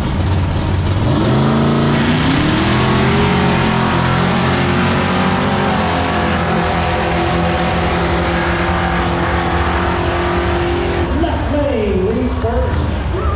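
Loud drag racing engines roar and rev hard as cars launch and speed away.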